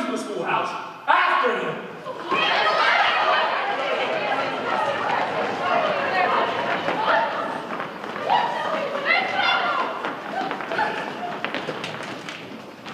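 A large group of young women and men sing together.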